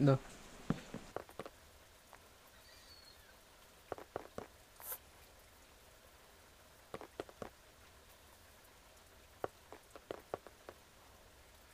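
Wooden blocks are set down with soft, short knocks.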